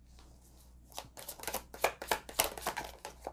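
A deck of cards rustles and clicks in someone's hands.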